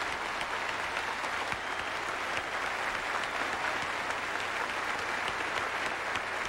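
Performers clap their hands.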